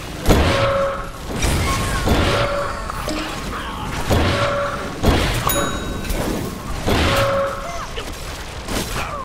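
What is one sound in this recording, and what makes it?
Laser beams fire in long, buzzing blasts.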